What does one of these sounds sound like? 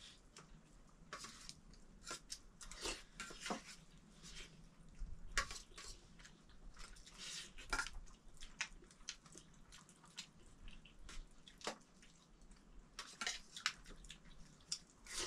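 Spoons clink and scrape against metal plates.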